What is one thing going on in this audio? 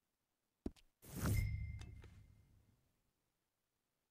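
A heavy book thumps open with a rustle.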